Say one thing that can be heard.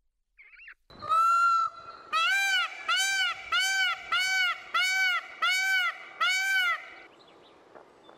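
A peacock gives loud, repeated wailing calls.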